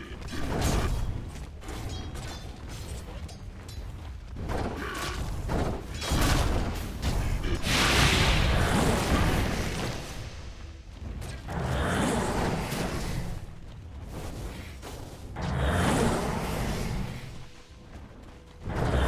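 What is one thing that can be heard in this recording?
Magic spells burst and crackle in a video game fight.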